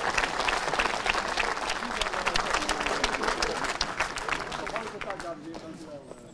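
An audience applauds loudly in the open air.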